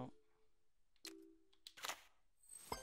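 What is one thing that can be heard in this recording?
Short electronic menu beeps sound now and then.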